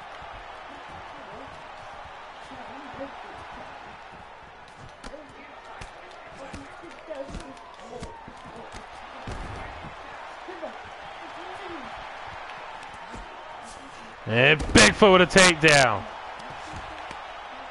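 Crowd noise murmurs steadily in a large arena.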